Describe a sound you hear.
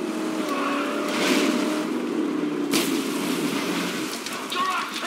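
A car engine roars as the car drives over rough ground.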